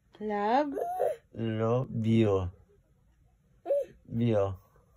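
A baby babbles and squeals up close.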